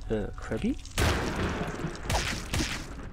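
A giant spider strikes with a sharp stab.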